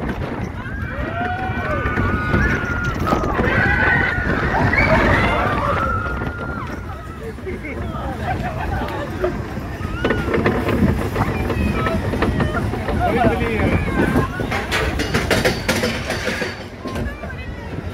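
A ride car rumbles and clatters along a track.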